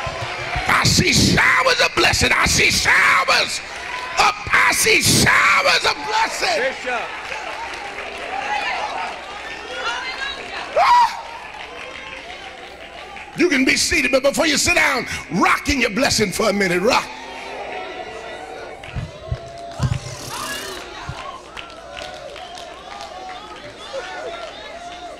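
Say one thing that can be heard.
An older man preaches loudly into a microphone, shouting with passion, heard through loudspeakers in a large echoing hall.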